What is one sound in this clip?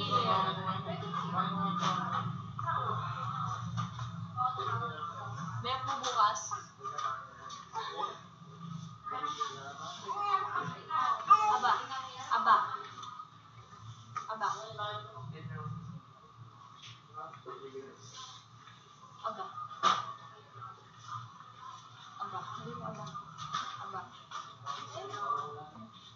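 A woman talks over an online call, heard through a small speaker.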